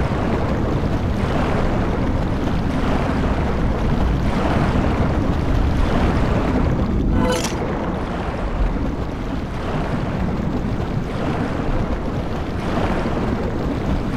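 Water swishes in slow, regular swimming strokes.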